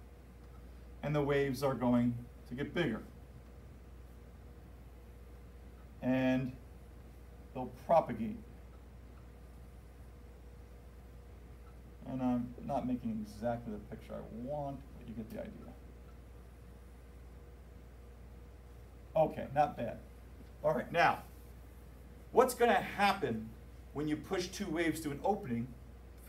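A man speaks calmly, pausing often.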